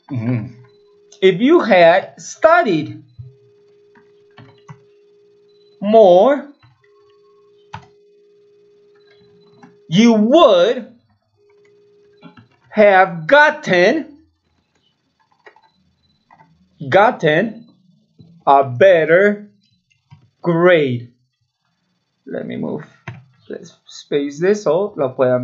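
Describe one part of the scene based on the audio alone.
A man speaks slowly and clearly into a nearby microphone, pausing between phrases.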